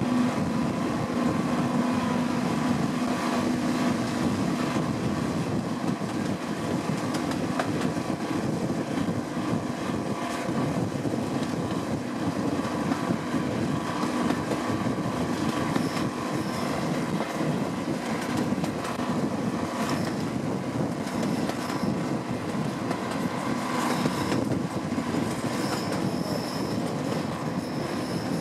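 Train wheels clatter rhythmically on the rails.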